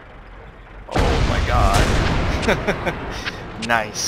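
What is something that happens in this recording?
A tank cannon fires with a heavy boom that rumbles away.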